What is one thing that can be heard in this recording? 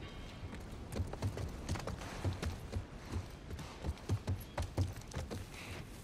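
Footsteps thud down wooden stairs.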